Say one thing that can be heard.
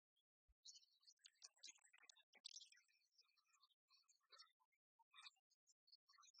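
Dice rattle and tumble in a tray.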